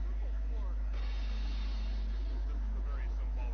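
Cymbals crash and shimmer.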